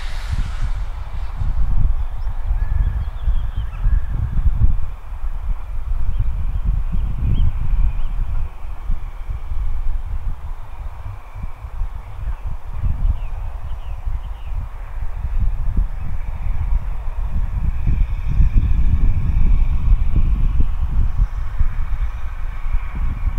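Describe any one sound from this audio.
Wind gusts and rumbles steadily outdoors.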